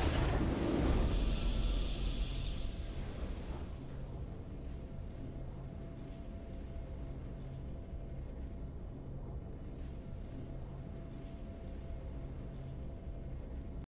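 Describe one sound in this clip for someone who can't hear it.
A triumphant fanfare swells and then settles into a soft, steady musical hum.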